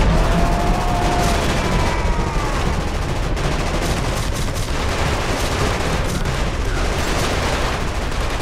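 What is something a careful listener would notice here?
A low rumbling din of battle fills the air.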